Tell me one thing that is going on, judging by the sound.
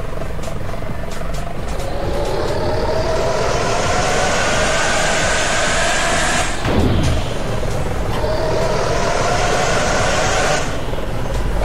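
A bus engine hums and rises in pitch as it speeds up.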